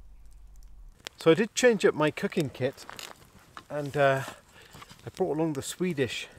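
A middle-aged man speaks calmly and close up, outdoors.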